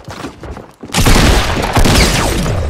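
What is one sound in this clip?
A rifle fires a burst of loud shots.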